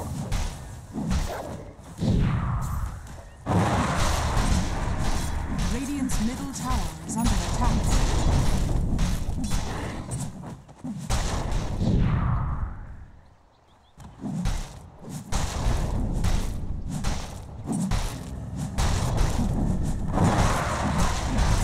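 Weapons and spells clash and crackle in a fight.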